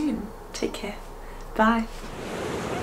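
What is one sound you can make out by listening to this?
A young woman speaks cheerfully and close by.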